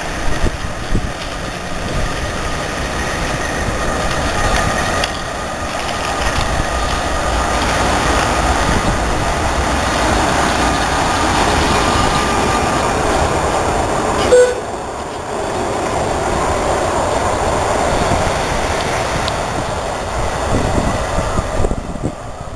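A tram rumbles and squeals along its rails as it approaches and passes close by.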